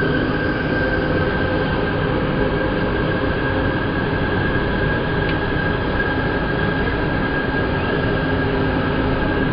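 A train rumbles and whines steadily along its tracks.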